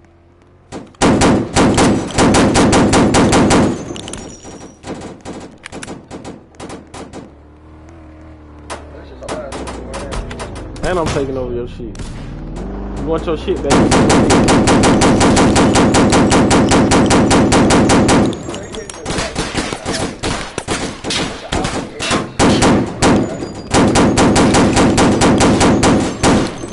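A gun fires rapid automatic bursts.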